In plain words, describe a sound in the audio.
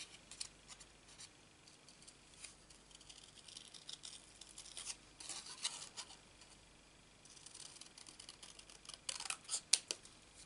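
Paper rustles softly as it is turned in the hand.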